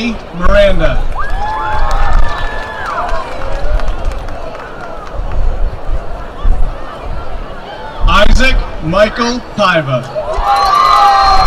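A crowd of young people cheers and whoops loudly outdoors.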